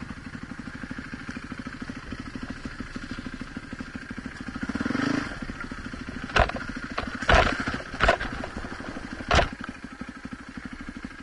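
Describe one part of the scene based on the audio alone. A dirt bike engine putters steadily at low speed close by.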